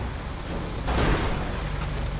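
A body thuds onto metal.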